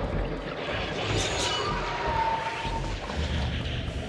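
A loud explosion bursts and debris scatters.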